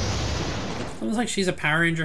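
A man talks into a headset microphone.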